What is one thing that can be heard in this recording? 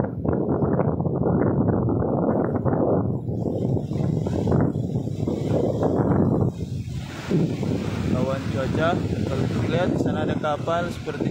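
Choppy waves wash against a rocky shore.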